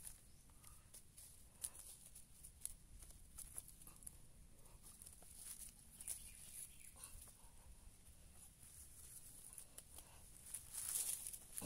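A small trowel scrapes and digs into loose soil.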